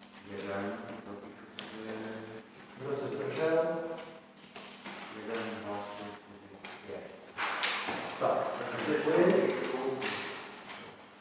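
A man speaks with animation in a large echoing hall.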